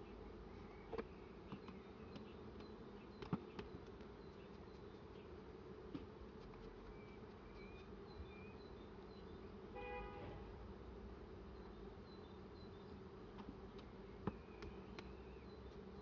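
Wooden hive frames knock and scrape against hive boxes.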